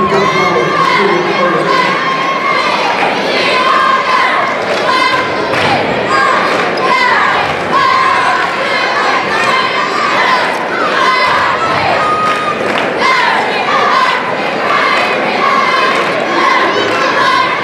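A large crowd cheers and shouts in an echoing gym.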